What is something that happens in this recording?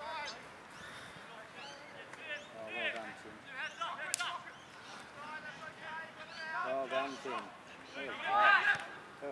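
Young players and spectators shout and call out across an open field.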